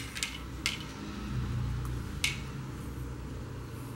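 Wire leads tap and rustle as hands handle them.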